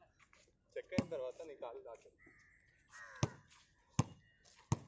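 A basketball bounces hard on an outdoor court.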